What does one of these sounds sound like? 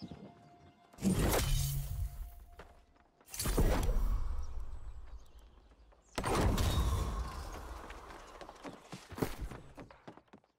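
Loud whooshing bursts of game sound effects rise and fade several times.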